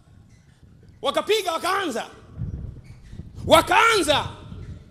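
A man preaches loudly and with animation into a microphone, his voice carrying through loudspeakers.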